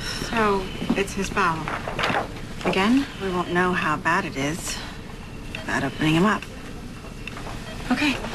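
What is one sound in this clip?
A second young woman answers in a soft, worried voice.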